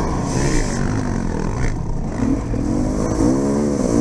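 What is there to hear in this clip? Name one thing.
Water splashes under a dirt bike's wheels.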